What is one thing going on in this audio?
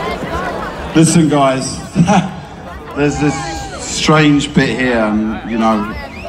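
A large crowd sings loudly together.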